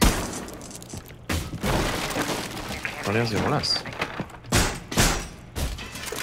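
A wooden barricade is smashed with heavy blows.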